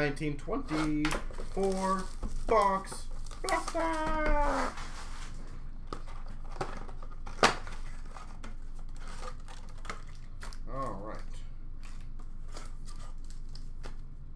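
Hands handle and open cardboard boxes of cards.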